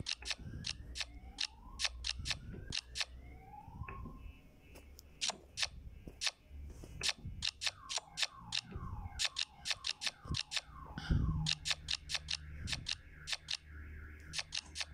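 Playing cards snap into place with quick, sharp clicks.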